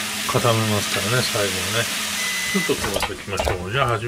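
Noodles sizzle and crackle in a frying pan.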